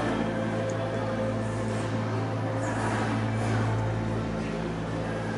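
Many people murmur and talk softly in the background of a large indoor hall.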